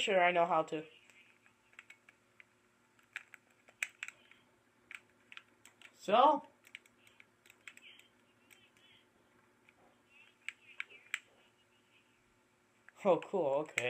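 Short crunching clicks of blocks being dug come from a game through a television speaker.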